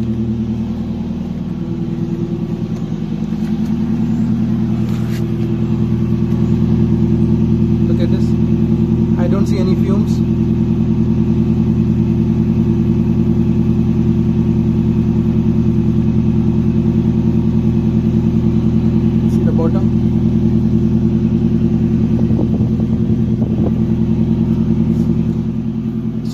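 A vehicle's engine idles with a steady, low rumble close by.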